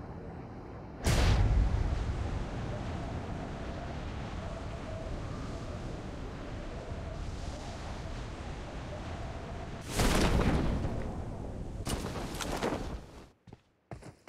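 Wind rushes loudly during a fall through the air.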